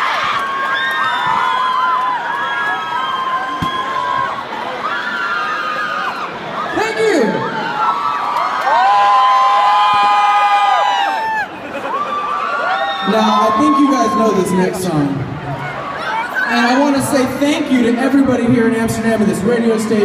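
A man sings through loudspeakers in a large echoing hall.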